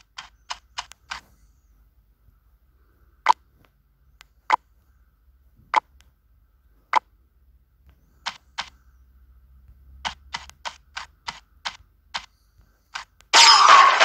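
Short game interface chimes sound as options are picked.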